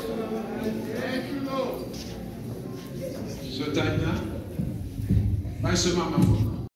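A man preaches with animation through a microphone in an echoing hall.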